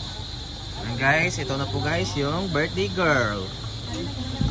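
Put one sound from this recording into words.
Women chat nearby outdoors.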